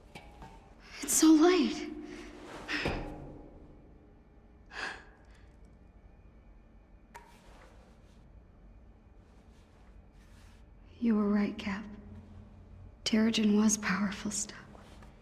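A young woman speaks warmly and playfully.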